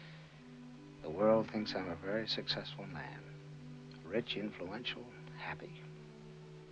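An elderly man speaks weakly and slowly, close by.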